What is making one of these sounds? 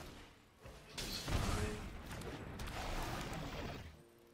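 A magical whoosh and shimmer ring out as a card lands on the game board.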